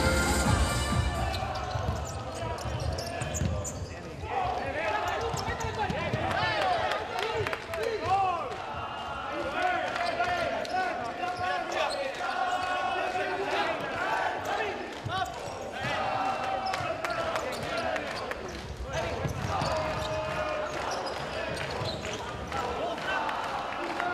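A ball thuds as players kick it.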